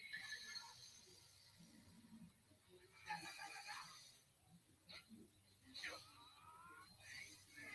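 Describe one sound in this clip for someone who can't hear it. Electronic game sound effects chime and whoosh in quick bursts.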